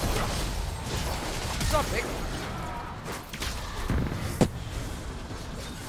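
Melee hits clash and thud in a video game fight.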